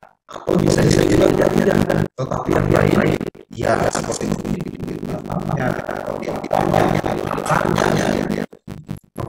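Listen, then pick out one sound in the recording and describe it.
A young man speaks with animation through a microphone on an online call.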